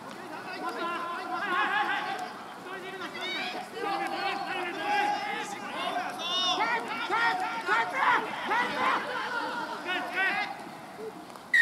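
Several young men shout and call to each other outdoors.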